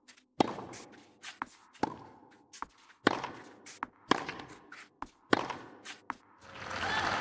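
A tennis ball is struck back and forth with sharp pops.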